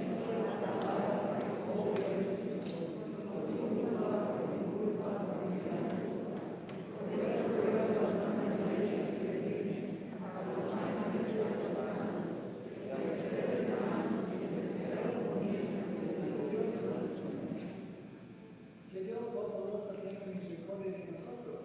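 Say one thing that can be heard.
A man speaks calmly and steadily, heard in a large echoing hall.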